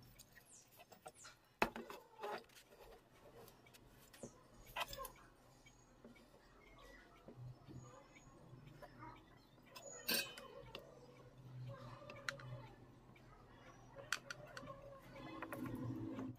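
Hands handle thin wires and a small circuit board, making light clicks and rustles.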